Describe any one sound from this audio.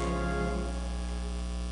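A band holds a final chord that quickly fades.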